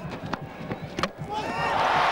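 A cricket bat strikes a ball with a sharp crack.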